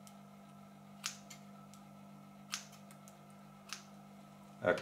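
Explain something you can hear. Wire cutters snip sharply a few times.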